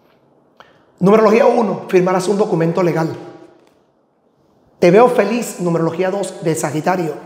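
A middle-aged man speaks with animation close to a microphone.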